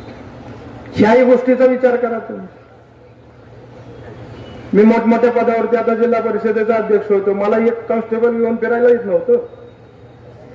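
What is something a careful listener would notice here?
A man speaks forcefully into a microphone, heard through loudspeakers.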